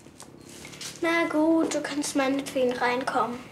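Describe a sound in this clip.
A young girl speaks in a high, clear voice close by.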